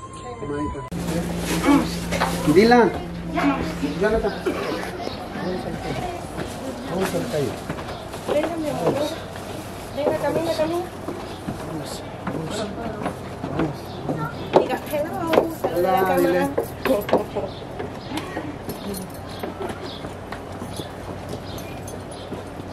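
Several adults talk and chatter nearby.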